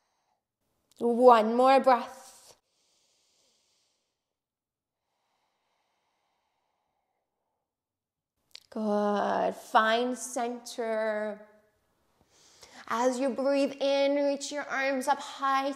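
A young woman speaks calmly and clearly into a microphone, close by.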